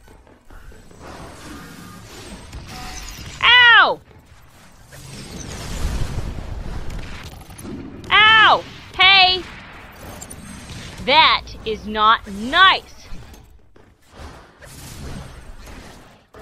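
Electronic sound effects whoosh and zap amid a low synthetic hum.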